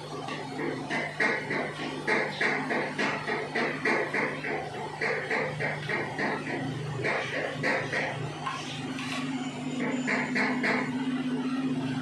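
Scissors snip rapidly through hair, close by.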